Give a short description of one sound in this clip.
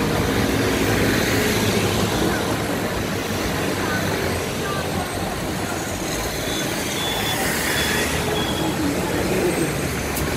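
Cars pass by close with a rushing of tyres.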